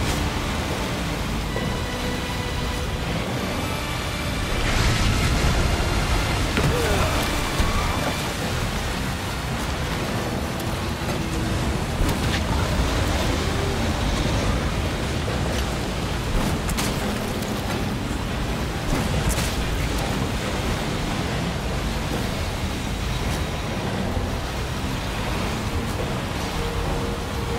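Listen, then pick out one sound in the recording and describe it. Water rushes and churns around a small boat moving fast.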